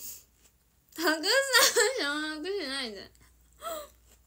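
A young woman laughs close to a phone microphone.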